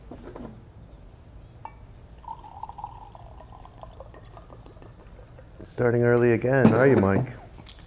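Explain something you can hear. A glass bottle knocks lightly against a table.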